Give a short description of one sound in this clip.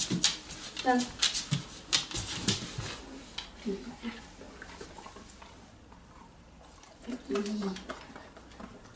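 A dog whines and grumbles in short, rising and falling bursts.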